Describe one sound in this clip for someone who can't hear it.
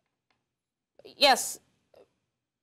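A young woman speaks briefly and calmly, close to a microphone.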